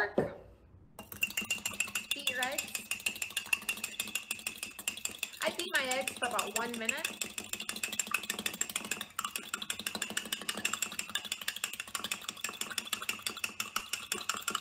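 A fork clinks rapidly against the inside of a mug as it stirs.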